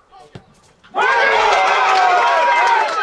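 Men cheer and shout loudly outdoors.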